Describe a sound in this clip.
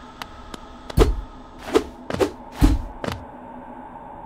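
Heavy thuds boom several times in quick succession.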